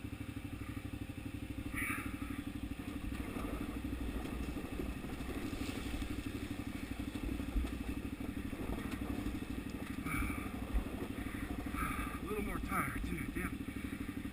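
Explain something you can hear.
A motorcycle engine chugs steadily at low speed.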